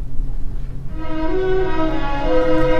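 Music plays over loudspeakers.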